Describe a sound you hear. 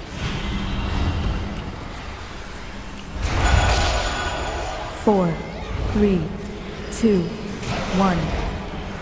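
Magic blasts and weapon clashes whoosh and crackle in a busy battle.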